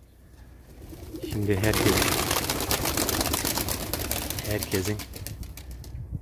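Pigeon wings flap and clatter in a burst of take-off.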